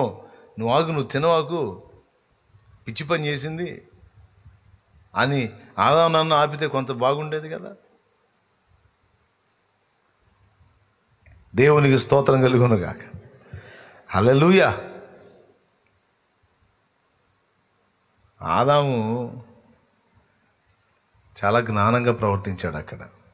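A man speaks into a microphone with animation, in short bursts with pauses.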